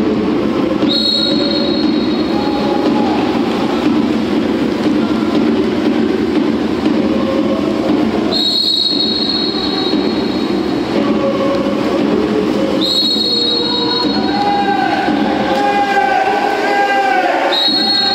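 A referee's whistle blows in short, sharp blasts.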